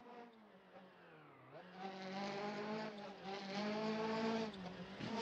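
A car engine drones steadily, then revs higher.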